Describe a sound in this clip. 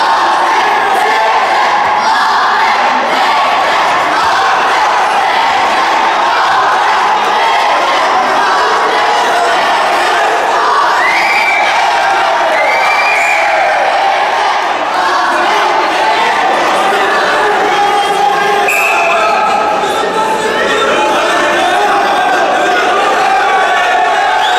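A large crowd in a big echoing hall cheers and shouts steadily.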